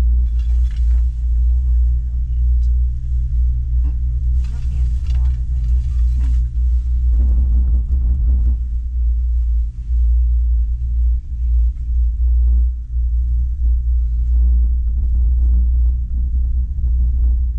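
Strong wind rumbles and buffets a helmet microphone throughout.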